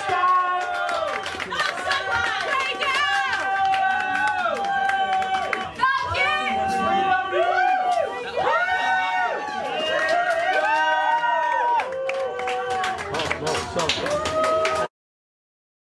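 A band plays loud electric guitars live.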